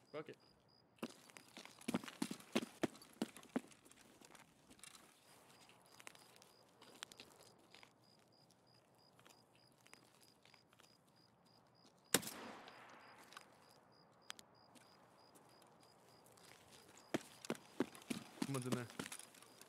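Footsteps crunch over gravel and grass.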